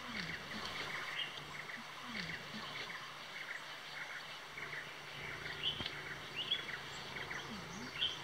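A small bird chirps and trills in short, repeated bursts close by.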